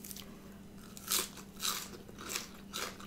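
A woman chews crunchy greens with moist mouth sounds.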